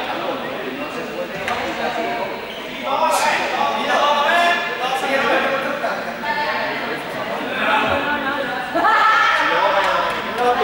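Young people talk and call out in a large echoing hall.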